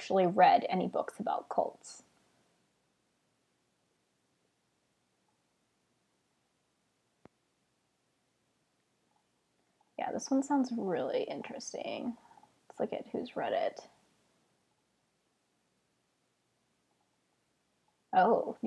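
A young woman talks calmly and closely into a microphone, with pauses.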